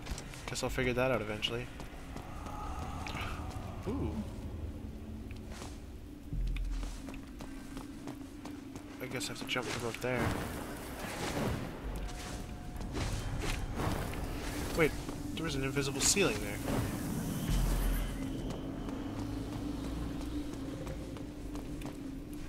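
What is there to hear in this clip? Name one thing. Footsteps thud on metal floors as a game character runs.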